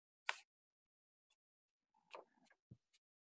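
Paper rustles briefly.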